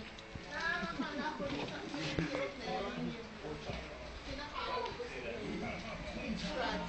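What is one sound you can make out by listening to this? Young women talk and laugh nearby.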